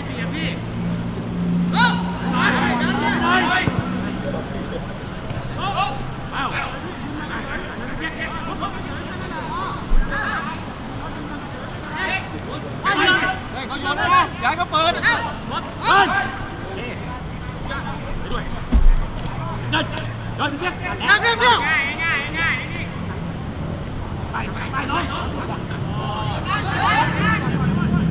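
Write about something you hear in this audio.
Male players shout to each other across an open outdoor pitch.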